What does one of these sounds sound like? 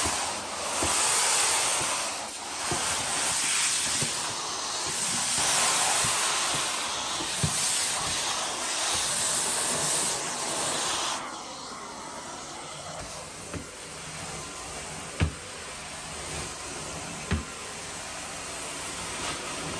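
A carpet cleaning wand hisses and sucks steadily as it glides over carpet.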